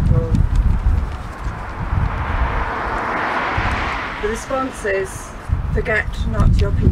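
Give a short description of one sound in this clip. A young woman speaks into a microphone outdoors.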